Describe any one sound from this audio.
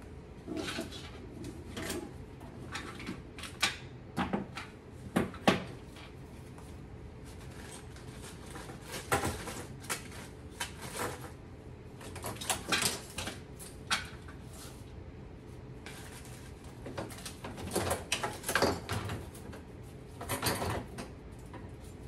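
Small objects clatter and rattle on a countertop as they are handled.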